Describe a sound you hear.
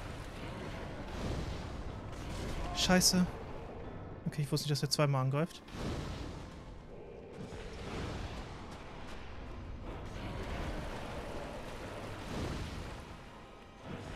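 Fireballs burst with a whoosh.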